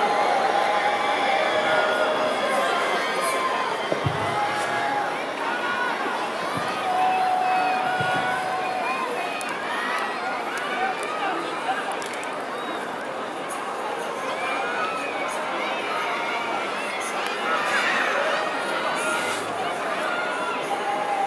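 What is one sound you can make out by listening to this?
A large stadium crowd chants and cheers loudly outdoors.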